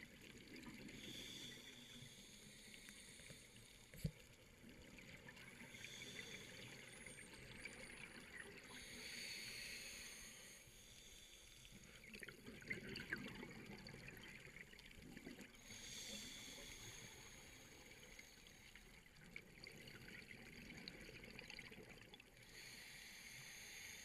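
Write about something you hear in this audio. A diver breathes in loudly through a regulator.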